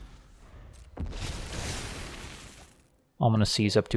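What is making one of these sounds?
A magical whoosh swells and fades away.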